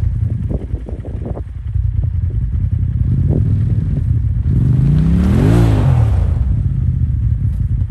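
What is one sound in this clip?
An off-road vehicle's engine rumbles nearby.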